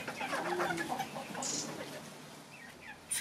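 Hens cluck softly close by.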